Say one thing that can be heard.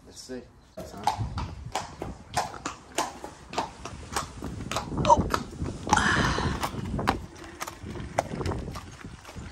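Horse hooves clop on hard ground.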